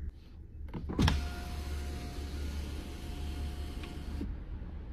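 An electric car window motor hums as the glass slides.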